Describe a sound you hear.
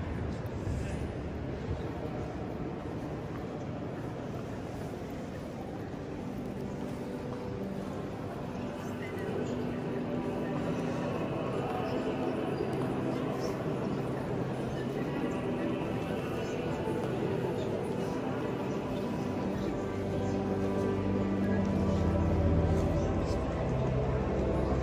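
Visitors murmur quietly in a large echoing hall.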